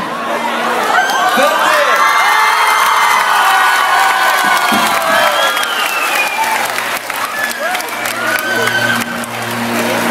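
A large crowd of young people screams and cheers loudly in a big echoing hall.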